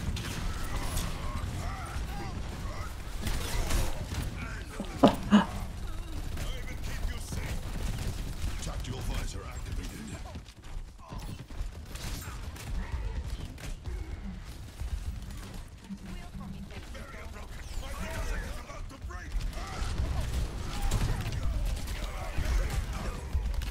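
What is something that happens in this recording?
Gunfire and blasts crackle from a game.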